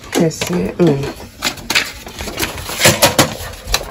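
A paper tray slides out of a printer with a plastic clatter.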